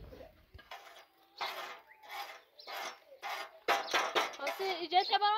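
A spoon scrapes and stirs in a metal pan.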